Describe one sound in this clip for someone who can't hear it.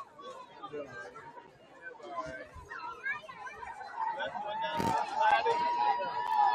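A crowd of spectators chatters and cheers outdoors.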